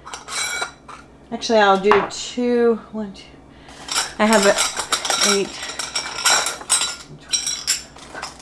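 A metal lid clicks and scrapes on a glass jar.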